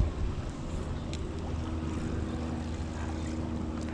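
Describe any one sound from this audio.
A fishing reel clicks as a line is wound in.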